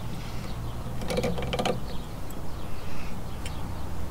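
Small metal parts click and rattle close by.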